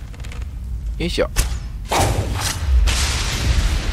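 A bowstring is released with a twang as an arrow is shot.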